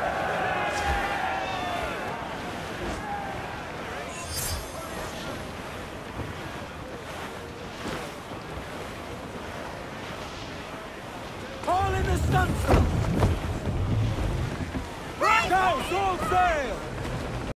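Ocean waves crash against a ship's hull.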